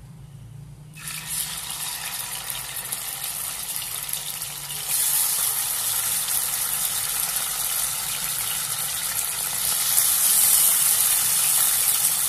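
Raw meat sizzles loudly in hot oil, getting louder as more pieces go in.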